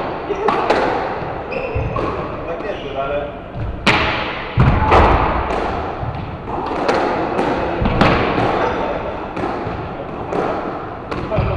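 A squash ball smacks off rackets and walls, echoing around the court.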